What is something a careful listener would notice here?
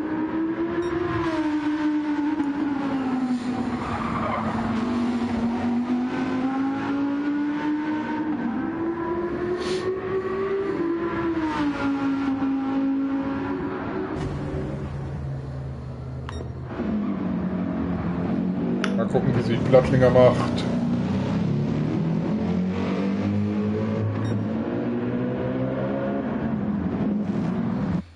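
A race car engine roars and revs as it shifts through gears.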